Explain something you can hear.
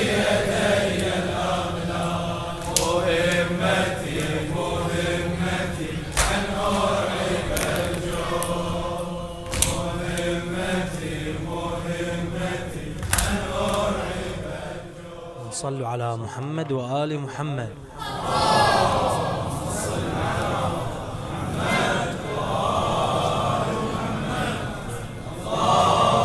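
A man chants loudly and with feeling into a microphone, his voice ringing in an echoing hall.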